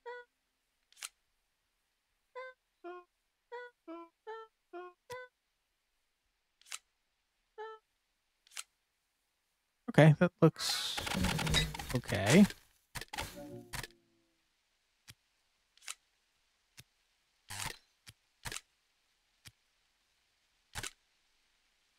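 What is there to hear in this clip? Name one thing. Sharp game clicks sound now and then.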